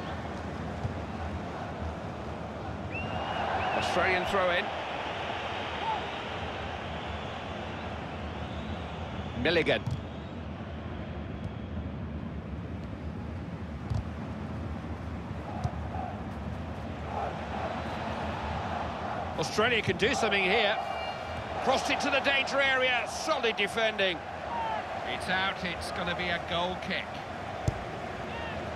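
A large stadium crowd murmurs and roars steadily in the background.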